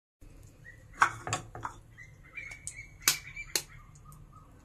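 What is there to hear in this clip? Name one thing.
An eggshell cracks sharply against a bowl's rim.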